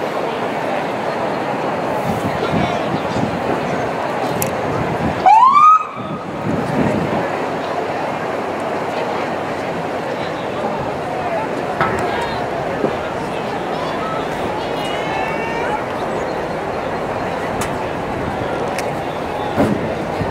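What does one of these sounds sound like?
A large outdoor crowd chatters and murmurs.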